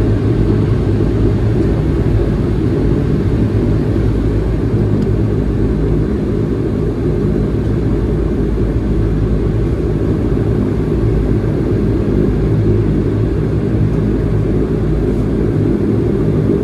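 A propeller engine drones loudly and steadily.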